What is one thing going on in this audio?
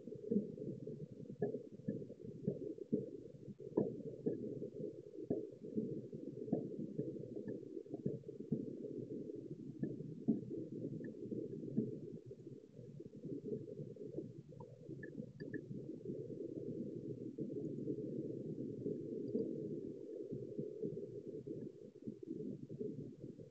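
A handheld radio hisses and crackles with static.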